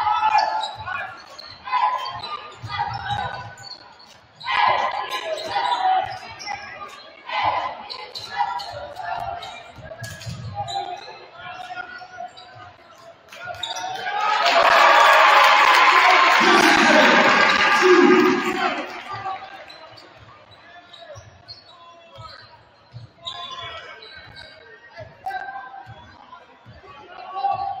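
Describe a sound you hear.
A basketball bounces on a hardwood court in a large echoing gym.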